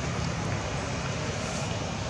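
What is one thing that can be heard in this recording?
A monkey chews food.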